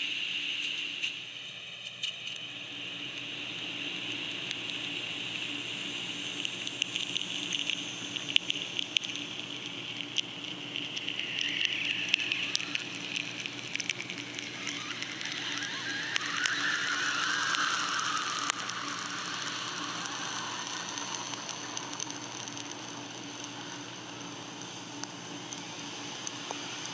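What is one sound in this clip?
A gas torch flame roars with a steady hiss.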